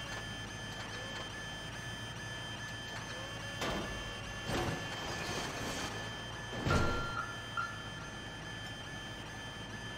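A forklift engine hums steadily.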